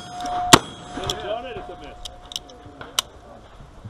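Bullets strike steel targets, which ring.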